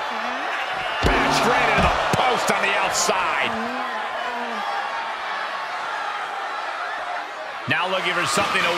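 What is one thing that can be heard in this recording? Bodies slam heavily against a ring with loud thuds.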